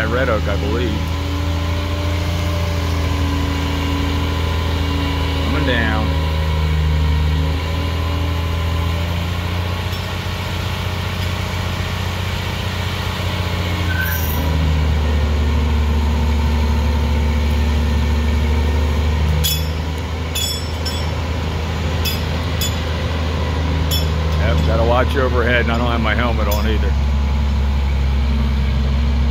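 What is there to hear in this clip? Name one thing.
A crane's diesel engine rumbles steadily nearby.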